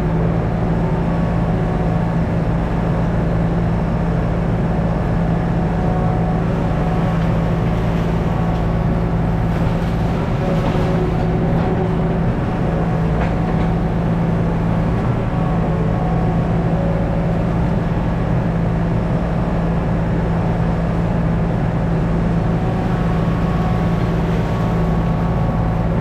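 A small digger's diesel engine drones loudly and steadily up close.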